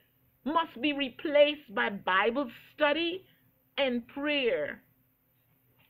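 An elderly woman speaks calmly and clearly, close by.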